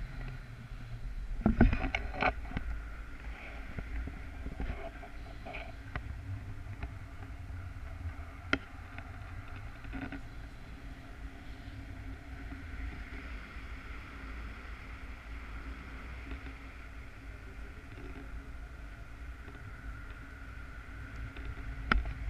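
Wind rushes and buffets steadily past in flight.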